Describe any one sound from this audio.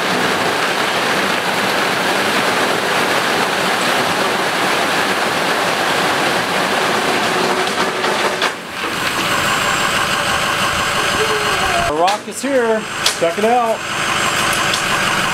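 A truck engine idles nearby.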